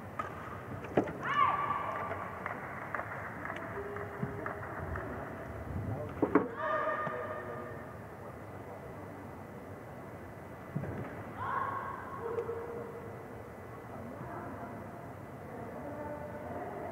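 Men talk and call out indistinctly in a large echoing hall.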